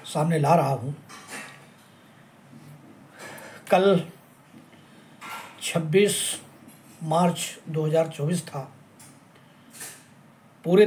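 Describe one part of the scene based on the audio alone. A middle-aged man speaks calmly in short phrases, close to the microphone.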